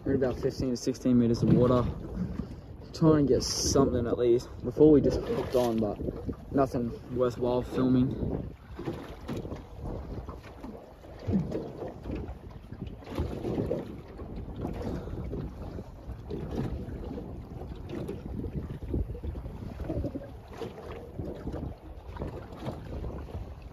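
Water laps against a boat hull.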